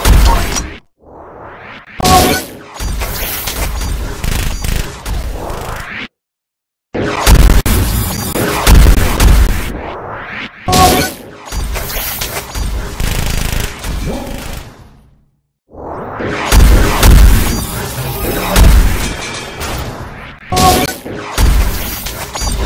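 Electronic battle sound effects whoosh and crash in bursts.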